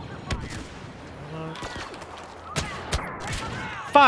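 Blaster shots fire rapidly with sharp zaps.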